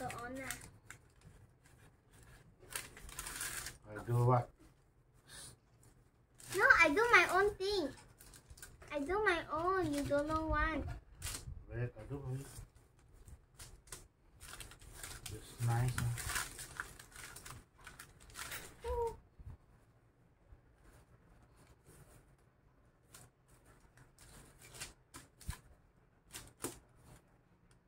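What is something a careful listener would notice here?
Paper crinkles and rustles under hands.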